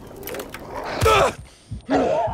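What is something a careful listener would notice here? A lock snaps open with a sharp click.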